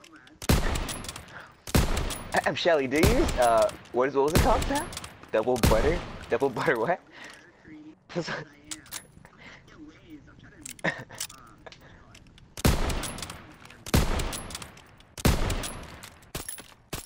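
Rifle shots ring out loudly, each followed by a booming echo.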